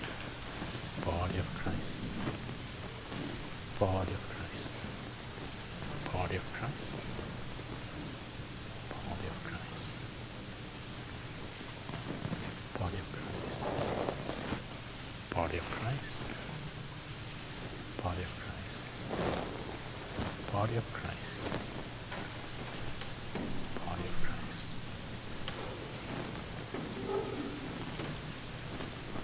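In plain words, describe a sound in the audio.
A man speaks quietly now and then in a large echoing hall.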